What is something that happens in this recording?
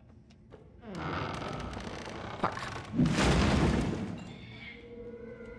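A heavy wooden desk scrapes across a floor.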